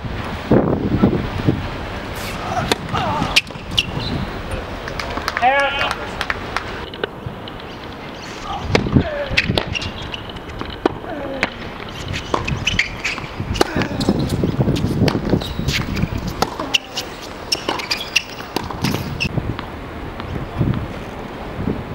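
A tennis ball is struck sharply with a racket, again and again.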